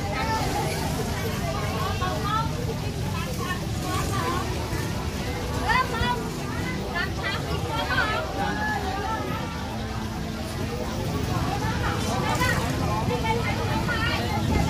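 A woman vendor talks.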